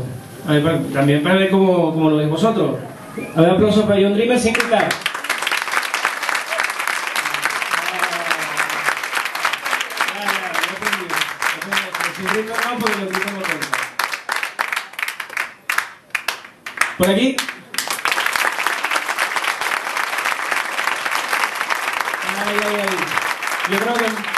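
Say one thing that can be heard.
A crowd chatters and cheers loudly.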